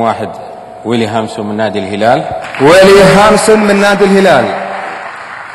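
A man announces loudly through a microphone, his voice echoing in a large hall.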